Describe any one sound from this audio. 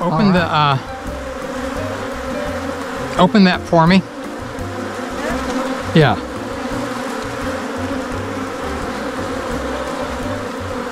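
Honeybees buzz steadily all around, close by.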